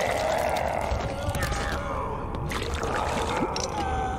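A body thumps to the floor.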